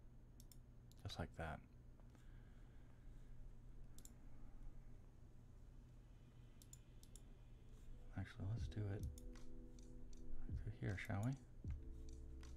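A man speaks quietly and close to a microphone.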